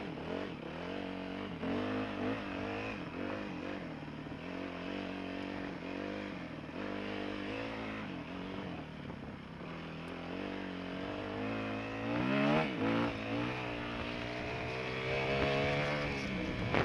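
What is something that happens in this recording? A motorbike engine revs up and down, loud and close.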